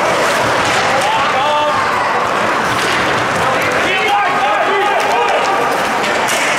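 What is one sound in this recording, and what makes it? Players and spectators shout and call out across the rink.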